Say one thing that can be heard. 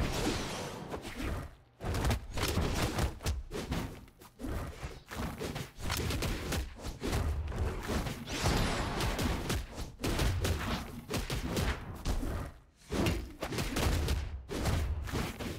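Cartoon punches and blade swipes land with quick thuds and whooshes.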